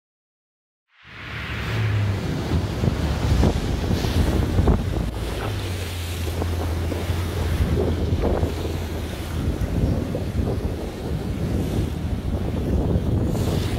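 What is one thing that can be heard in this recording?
Waves slap and splash against a moving boat.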